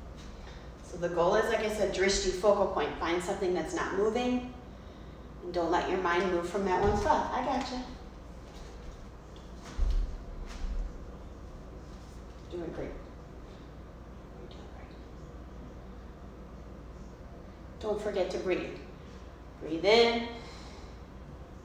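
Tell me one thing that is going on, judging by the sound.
A woman speaks calmly nearby, giving instructions.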